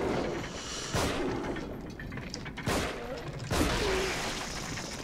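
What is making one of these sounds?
A pistol fires loudly with an echo.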